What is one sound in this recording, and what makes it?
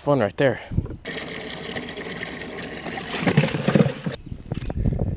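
Water sprays from a hose into a plastic tub.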